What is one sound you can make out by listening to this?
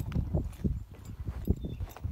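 Footsteps crunch on loose gravel close by.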